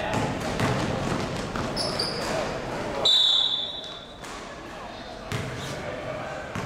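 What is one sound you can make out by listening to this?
A basketball thuds as it bounces in a large echoing hall.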